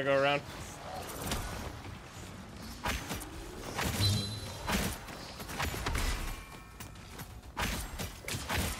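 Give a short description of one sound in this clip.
Game weapons fire in bursts with sharp impacts.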